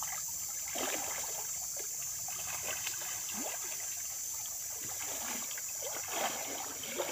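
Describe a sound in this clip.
Muddy water splashes and sloshes close by.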